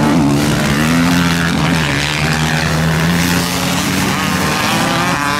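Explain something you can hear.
A motorcycle engine roars and revs close by.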